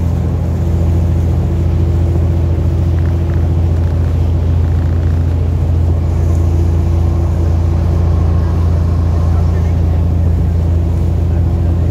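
A boat engine drones steadily and loudly close by.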